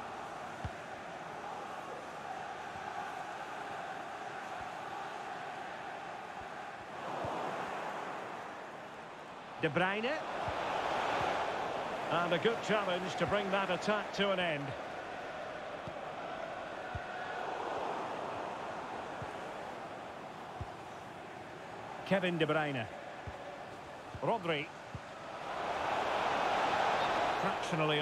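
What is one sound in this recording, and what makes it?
A large stadium crowd murmurs and roars steadily, swelling at times.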